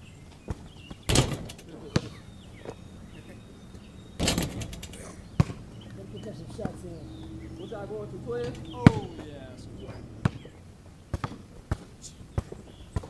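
A basketball bounces with sharp thumps.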